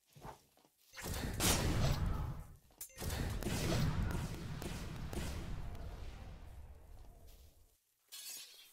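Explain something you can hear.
A magical energy blast roars and crackles loudly.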